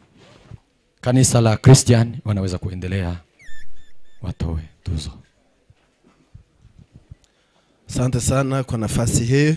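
A man speaks steadily through a microphone.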